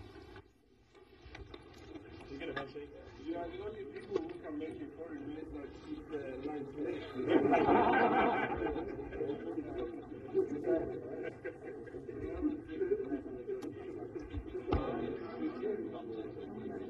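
Several men chat and laugh together.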